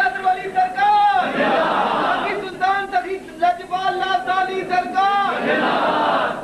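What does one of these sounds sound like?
A man chants in a melodic voice through a microphone.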